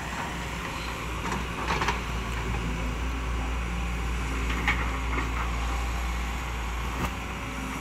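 A diesel crawler excavator's engine rumbles under load.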